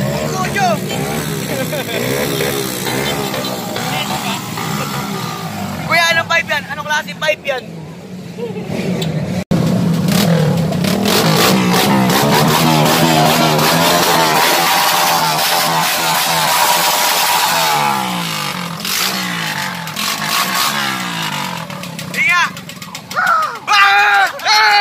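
A motorcycle engine idles and revs loudly close by.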